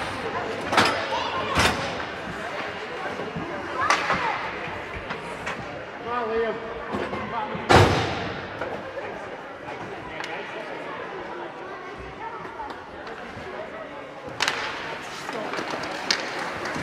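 Spectators chatter faintly in the distance.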